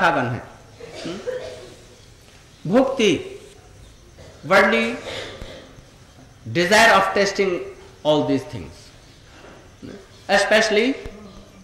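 An elderly man speaks slowly and expressively into a microphone, with pauses between phrases.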